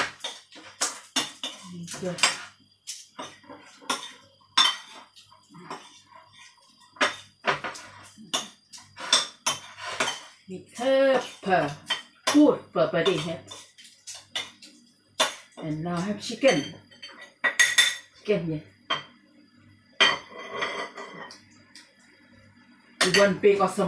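A spoon clinks and scrapes against a pan.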